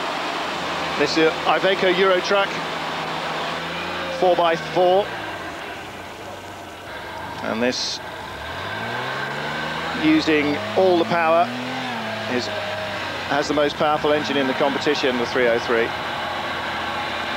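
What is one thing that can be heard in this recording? An off-road car's engine revs up and down.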